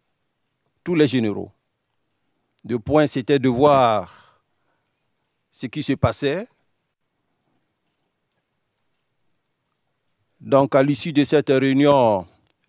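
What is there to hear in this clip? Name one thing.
A man speaks calmly into a microphone, in short phrases with long pauses.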